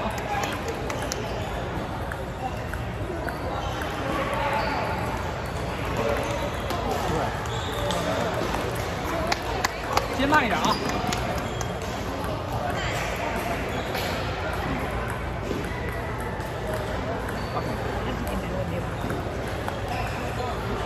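Table tennis balls click against paddles and tables in a large echoing hall.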